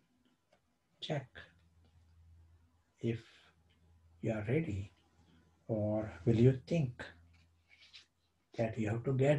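A middle-aged man speaks calmly and slowly, close to a microphone.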